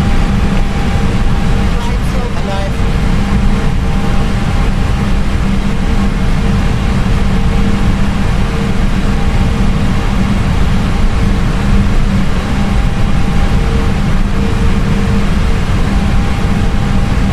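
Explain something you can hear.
Jet engines roar steadily with a low hum.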